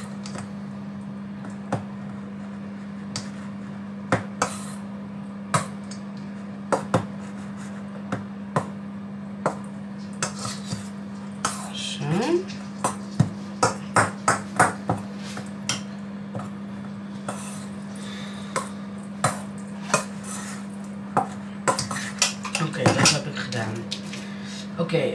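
A spoon clinks against a metal bowl as food is stirred.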